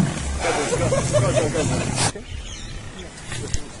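Lions growl and snarl.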